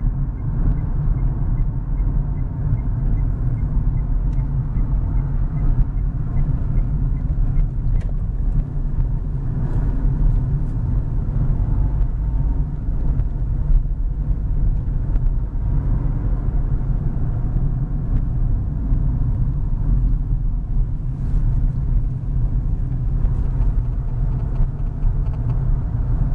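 A car's engine rumbles steadily from inside the cabin.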